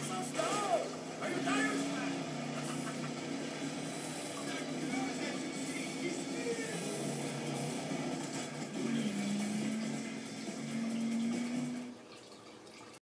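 A racing car engine roars and whines through a television loudspeaker.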